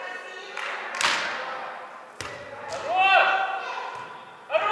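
A volleyball is smacked by hand, echoing in a large hall.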